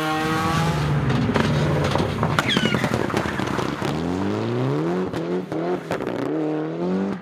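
Loose gravel sprays and crackles under spinning tyres.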